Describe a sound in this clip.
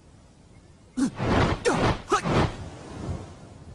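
Sharp whooshes cut the air as a man swings his arms.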